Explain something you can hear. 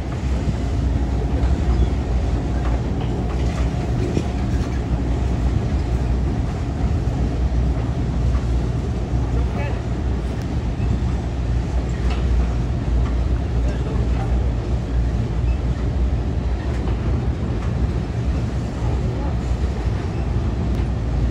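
A freight train rumbles and clatters steadily across a bridge.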